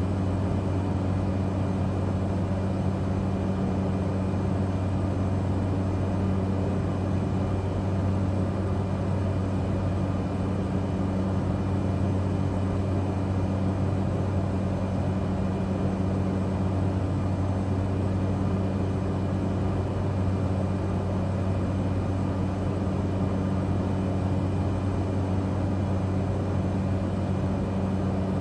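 A small propeller plane's engine drones steadily from inside the cockpit.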